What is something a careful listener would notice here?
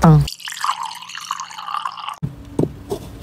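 Liquid pours into a stone bowl.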